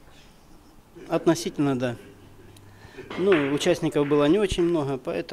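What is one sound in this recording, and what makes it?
A middle-aged man answers calmly into a microphone.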